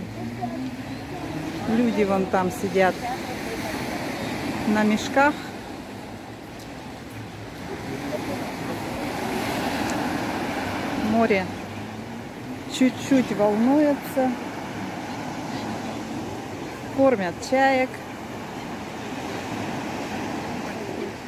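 Waves wash and break on a pebble shore.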